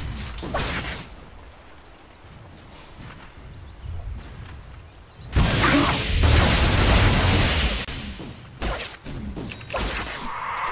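Magic spells whoosh and crackle amid the clash of a fantasy battle.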